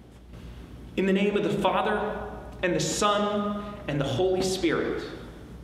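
A young man speaks with animation in a slightly echoing room.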